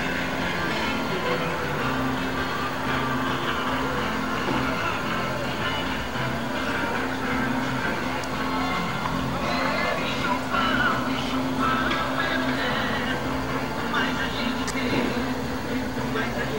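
A motorboat engine drones steadily across the water.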